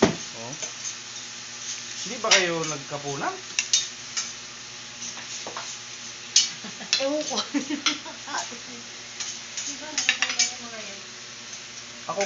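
Spoons and forks clink against plates.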